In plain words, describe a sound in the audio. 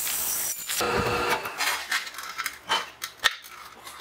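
Metal chips scrape and rattle on a metal plate.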